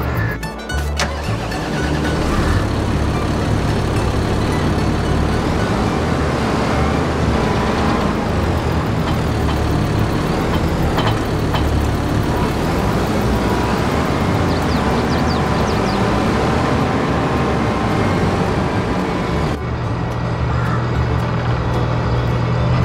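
A diesel tractor engine idles.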